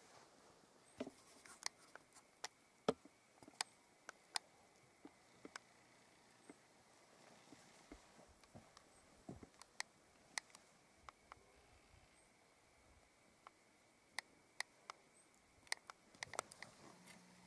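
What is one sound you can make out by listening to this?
Small seeds tick and patter as they drop onto soil.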